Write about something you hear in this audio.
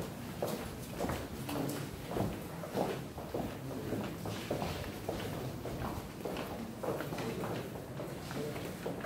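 Footsteps click on a hard floor at a walking pace.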